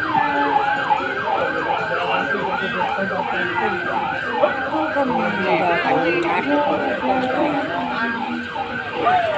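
A group of young men chant in rhythm as they march outdoors.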